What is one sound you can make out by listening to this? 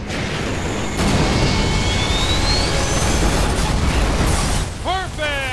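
An aircraft explodes and crashes with a loud blast.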